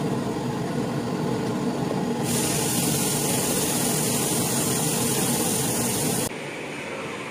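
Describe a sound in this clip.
Food sizzles in a hot pot.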